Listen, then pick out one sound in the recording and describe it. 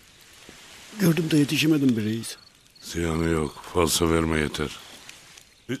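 A second man speaks in a low voice, close by.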